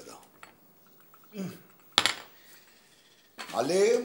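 A cup clinks on a saucer.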